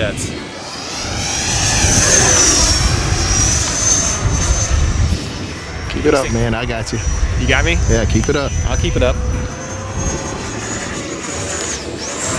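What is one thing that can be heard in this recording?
A model plane's engine whines high overhead, rising and falling in pitch as it passes.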